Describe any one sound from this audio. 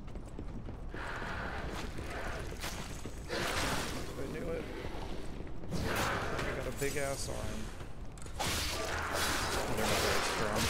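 Blades clash and strike in a close fight.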